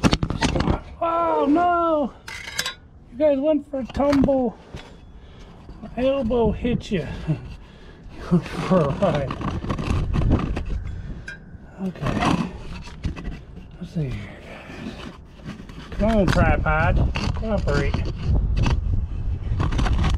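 A middle-aged man talks casually close by.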